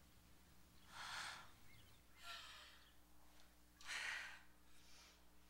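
A woman sobs quietly and sniffles, farther off in a quiet room.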